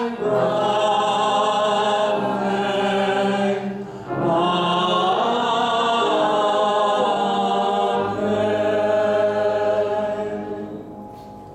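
A piano plays softly along with a singer.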